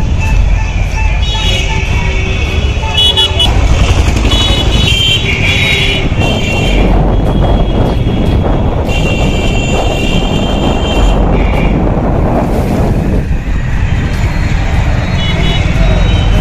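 Horns honk repeatedly in traffic.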